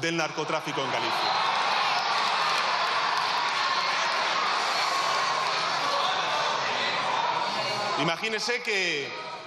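A crowd applauds loudly in a large hall.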